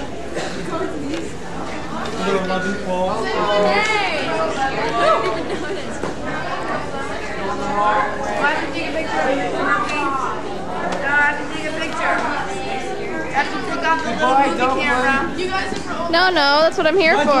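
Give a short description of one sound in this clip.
Young men and women chat and laugh close by.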